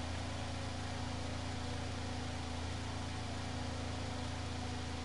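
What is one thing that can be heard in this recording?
A racing car engine idles with a steady low rumble.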